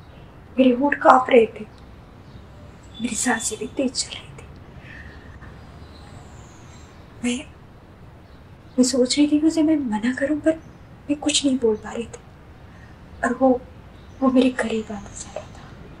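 A woman talks with animation close by, in short bursts.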